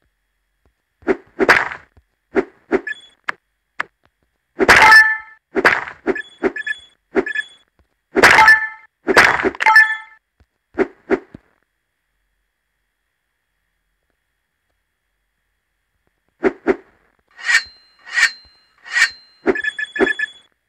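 Short electronic blips and chimes play in quick bursts.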